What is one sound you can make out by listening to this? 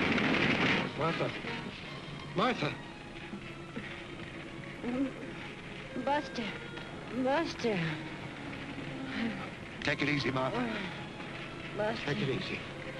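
A woman groans and cries out in pain close by.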